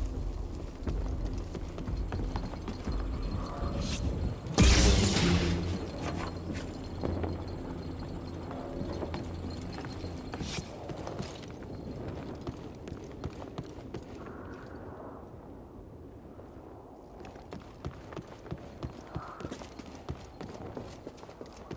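Footsteps thud on wooden planks and rock.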